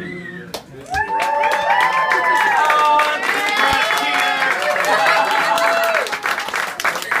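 Several women cheer and whoop loudly.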